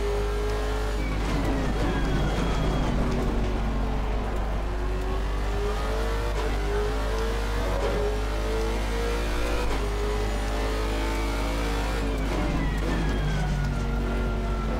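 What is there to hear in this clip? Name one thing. A racing car engine's pitch falls sharply as the car brakes into a corner.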